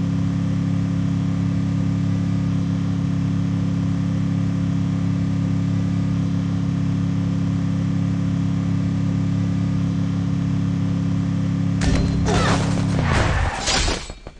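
A motor rickshaw engine hums steadily as it drives.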